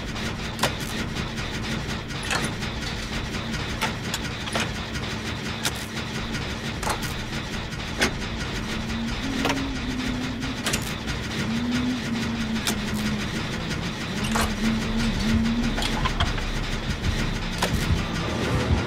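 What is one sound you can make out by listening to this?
A machine's parts clatter and click.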